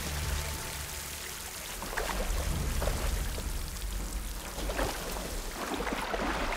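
Leaves rustle as someone pushes through plants.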